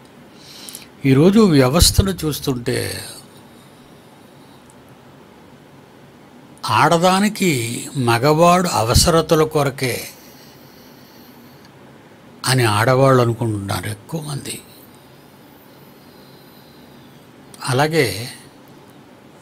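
An elderly man speaks calmly into a close microphone, in short bursts with pauses.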